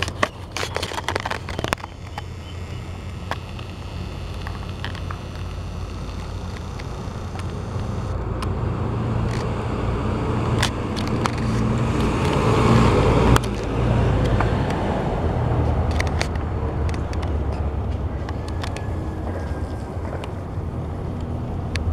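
A small dog's claws click on concrete.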